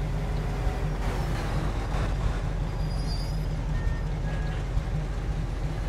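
A truck drives past on the street.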